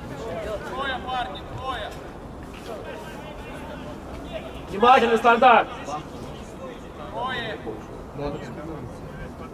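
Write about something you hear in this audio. Several men shout to each other outdoors, some far off.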